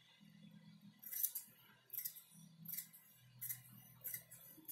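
Scissors snip through fabric in short crisp cuts.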